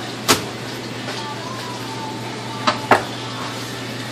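Raw fish fillets thump softly on a cutting board.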